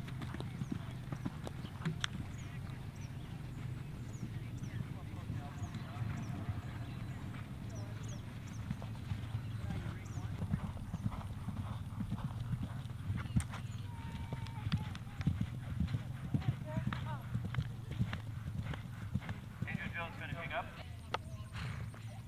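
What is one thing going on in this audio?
A horse gallops over grass with dull hoofbeats.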